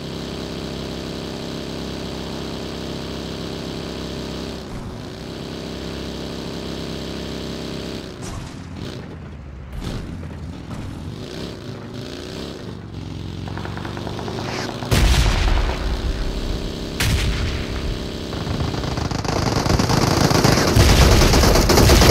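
A buggy engine hums and roars steadily.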